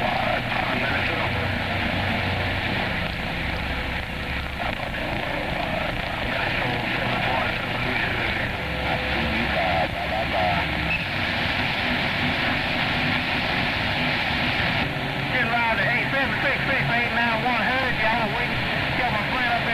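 Static hisses and crackles steadily from a radio receiver.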